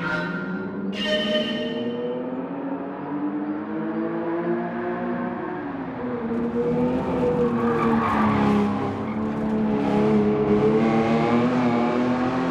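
A racing car engine roars and changes pitch as the car speeds along.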